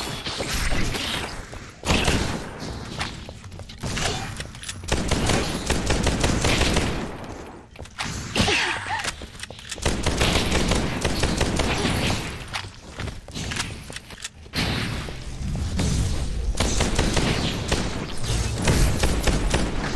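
Electric blasts crackle and zap.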